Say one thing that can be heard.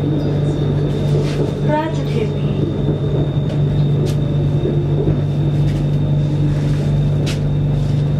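A train hums and rumbles steadily from inside a carriage.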